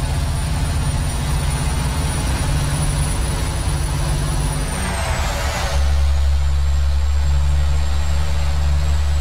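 A heavy truck engine rumbles steadily and deepens as it shifts gear.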